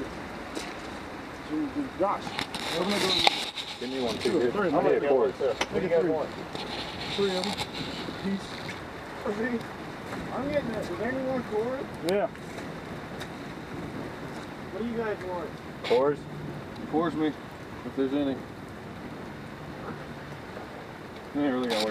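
A fire crackles and flares up.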